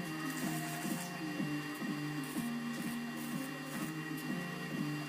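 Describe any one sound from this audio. An electric welding arc crackles and hisses.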